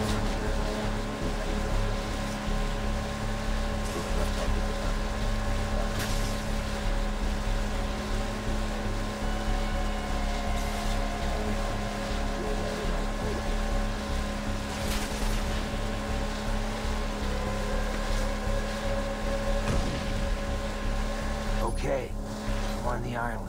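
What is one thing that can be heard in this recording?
A vehicle engine hums steadily as it speeds over water.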